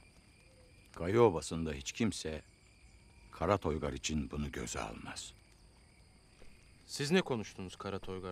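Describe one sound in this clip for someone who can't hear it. An elderly man speaks gravely close by.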